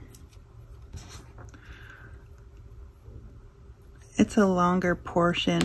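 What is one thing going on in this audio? Paper rustles softly under a hand.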